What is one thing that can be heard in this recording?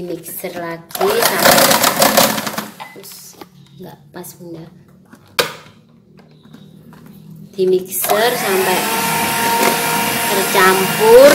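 An electric hand mixer whirs as it beats in a metal bowl.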